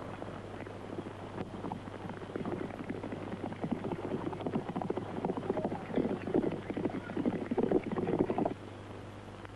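Horses' hooves gallop, growing louder as they approach.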